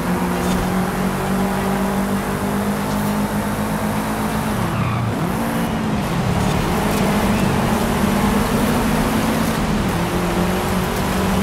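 A car engine roars at high revs, dropping in pitch and then climbing again.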